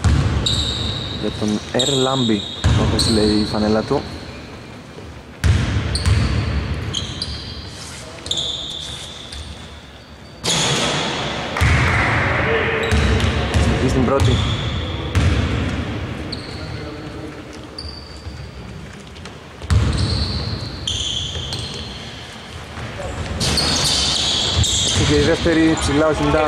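Shoes squeak sharply on a hard court, echoing in a large hall.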